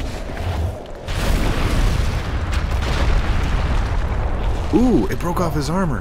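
A huge creature collapses to the ground with a deep, loud rumble.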